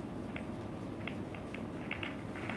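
Snooker balls click softly as they are set down on the table.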